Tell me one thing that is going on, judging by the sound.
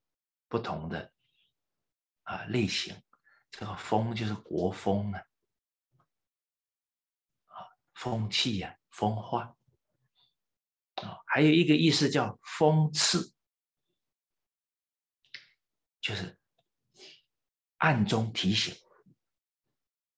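A middle-aged man speaks calmly in bursts with pauses, close to the microphone.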